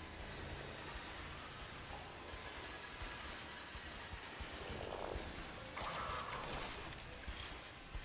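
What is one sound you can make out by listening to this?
Tall grass rustles as a figure creeps through it.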